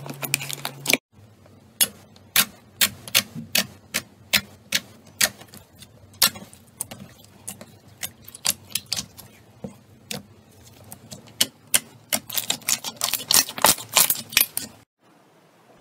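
Fingers press bubbly slime, popping air pockets with sharp clicks.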